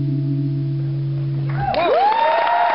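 An acoustic guitar chord rings out.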